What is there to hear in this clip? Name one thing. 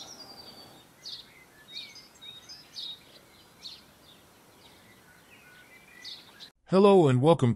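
Small birds chirp and twitter outdoors.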